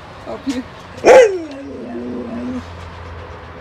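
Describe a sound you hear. A dog howls loudly with a long falling cry.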